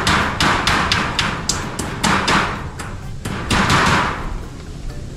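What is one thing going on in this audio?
Bamboo poles knock and rattle together.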